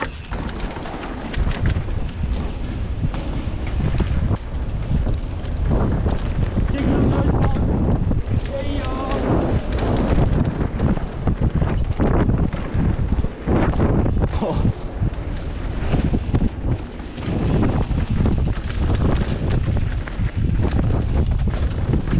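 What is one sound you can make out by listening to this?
A bicycle's frame and chain rattle over bumps.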